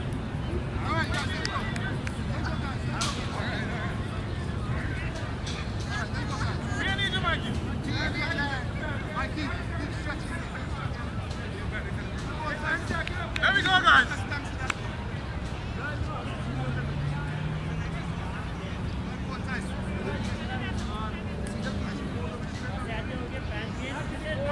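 Men call out to each other across an open field.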